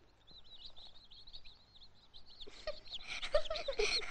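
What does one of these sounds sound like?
Chicks peep and chirp nearby.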